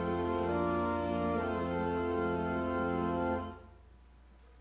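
A congregation sings a hymn, holding a long final chord.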